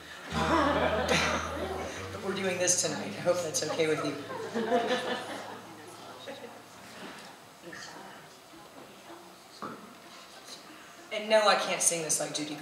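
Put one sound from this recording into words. A man speaks calmly through a microphone and loudspeakers in a large room.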